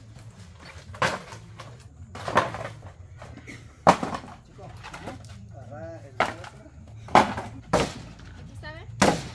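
Hollow bamboo poles knock and clatter as they are pulled down outdoors.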